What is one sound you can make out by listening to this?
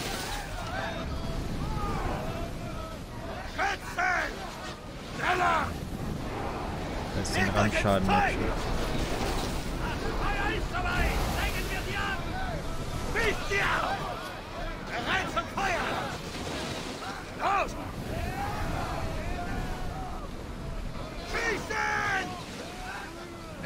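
Waves rush and splash against a wooden ship's hull.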